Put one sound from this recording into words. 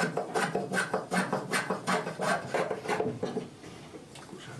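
A knife scrapes and shaves wood in quick strokes.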